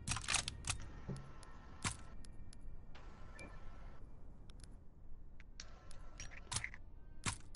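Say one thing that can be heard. Short sharp clicks of a game menu sound again and again.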